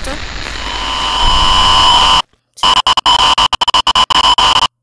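Loud hissing static crackles and cuts in and out.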